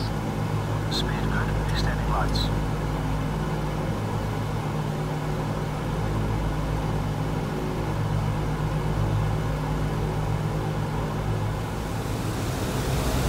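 Propeller engines drone steadily, muffled from inside the cockpit.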